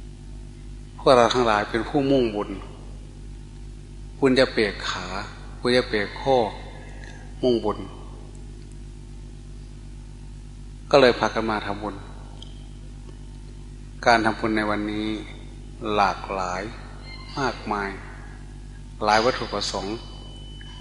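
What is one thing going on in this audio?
An elderly man speaks calmly in short phrases with pauses, heard through a microphone.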